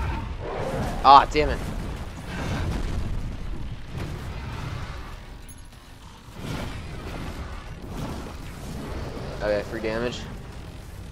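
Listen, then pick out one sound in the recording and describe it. A giant monster lets out a loud roar.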